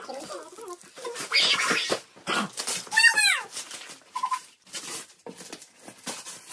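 Wrapping paper rustles and tears as presents are opened.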